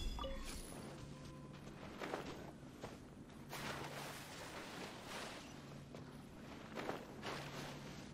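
Water splashes with swimming strokes.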